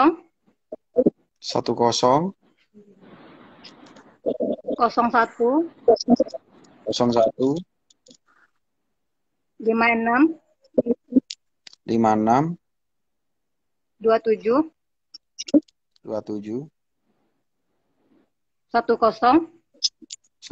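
A young woman talks in short phrases over an online call.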